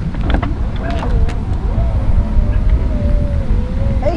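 A car's rear hatch clicks and swings open.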